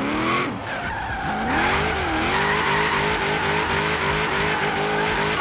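A car engine revs high and changes pitch as it drifts.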